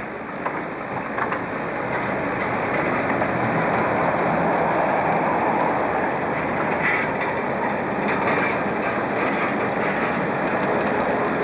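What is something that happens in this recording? Wagon wheels clatter over rail joints.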